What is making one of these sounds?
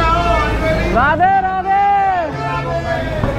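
A man calls out loudly.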